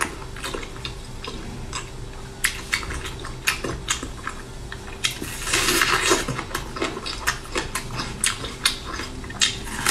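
A raw onion crunches as a young woman bites into it.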